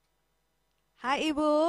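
A woman speaks through a microphone over an online call.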